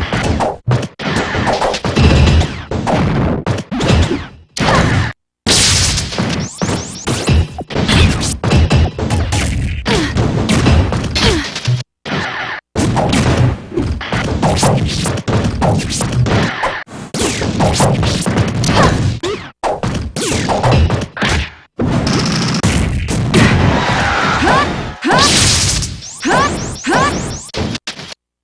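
Fighting sounds of hits, slashes and blasts come in quick bursts.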